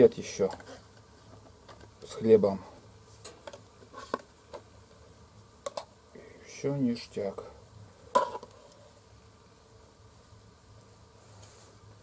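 A metal tin lid is pried open with a knife.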